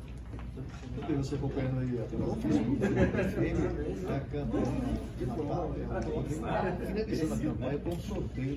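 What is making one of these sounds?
Several men and women talk nearby.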